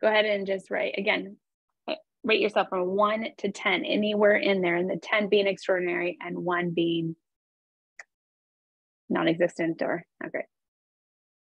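A young woman talks with animation through an online call.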